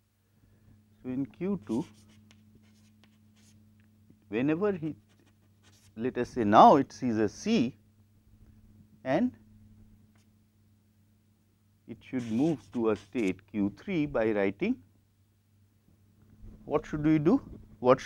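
A man speaks calmly, explaining in short bursts with pauses.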